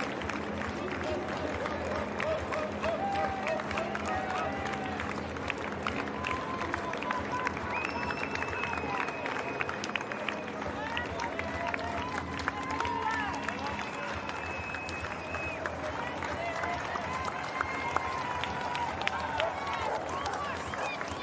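A crowd of spectators cheers and whistles outdoors.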